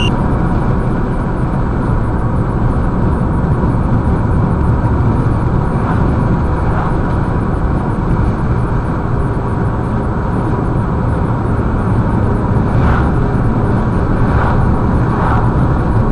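A car's engine and tyres rumble steadily from inside the car on a highway.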